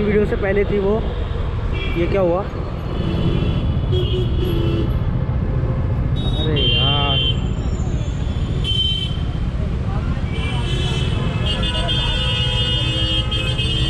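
A motorcycle engine idles and rumbles up close.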